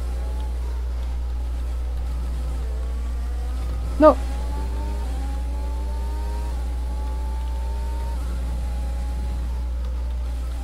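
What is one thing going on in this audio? A racing car engine whines and changes pitch as gears shift.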